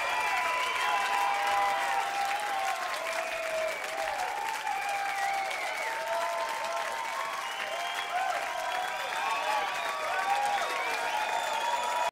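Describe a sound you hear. A large crowd cheers and whistles in a big open space.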